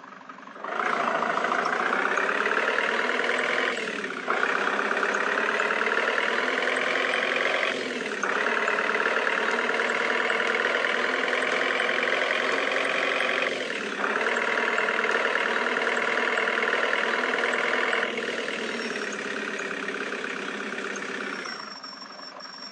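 A van engine revs up, drops briefly with each gear change, and revs again.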